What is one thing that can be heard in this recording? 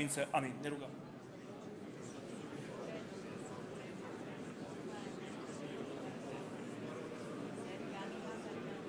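A crowd murmurs softly in a large echoing hall.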